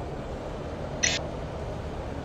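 A game menu gives a short electronic blip.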